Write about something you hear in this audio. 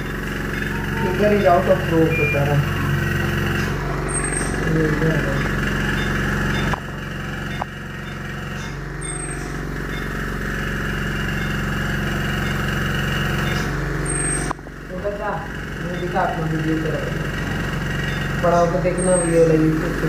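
A newborn baby cries close by.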